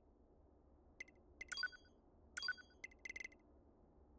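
Short electronic menu chimes beep several times.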